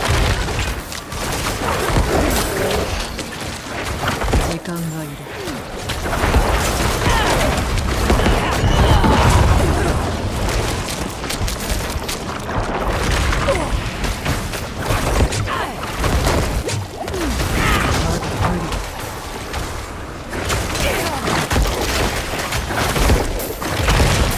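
Spells burst and crackle in a fast fight.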